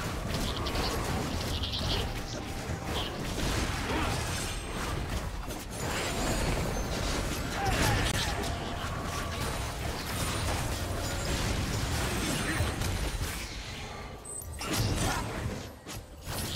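Weapons clash and strike repeatedly in a fantasy battle game.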